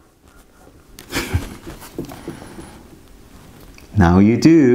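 Cardboard packaging rustles in a man's hand.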